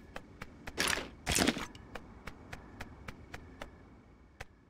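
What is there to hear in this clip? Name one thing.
Footsteps tap steadily.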